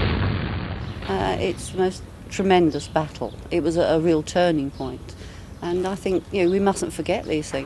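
An elderly woman speaks calmly close to a microphone.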